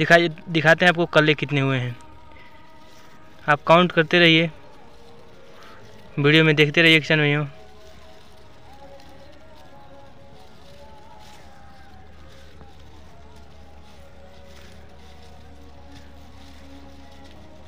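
Rice leaves rustle softly as a hand brushes through them.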